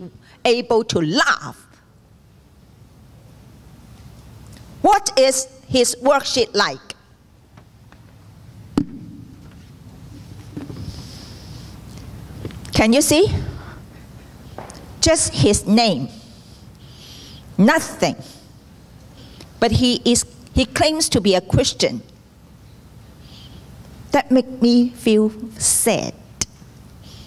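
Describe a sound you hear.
A woman speaks through a microphone in short bursts in a large echoing hall.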